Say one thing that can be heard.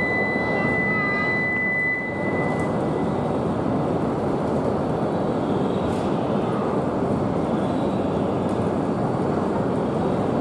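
A high-speed train rolls slowly along the platform with a steady rumble.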